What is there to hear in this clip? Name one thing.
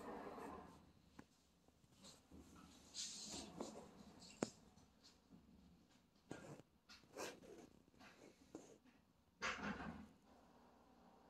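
Fabric rustles as a cat shifts on a blanket.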